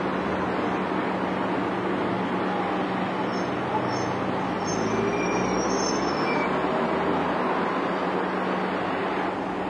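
A bus engine rumbles as the bus pulls slowly past.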